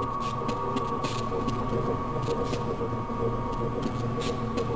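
Electric sparks crackle and snap in short bursts.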